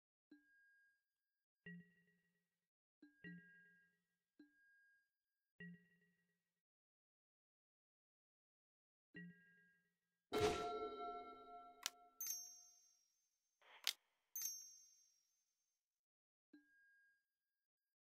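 Short electronic blips and chimes sound now and then.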